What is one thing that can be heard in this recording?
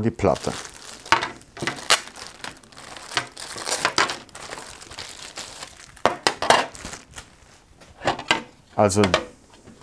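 A plastic bag crinkles and rustles in a man's hands.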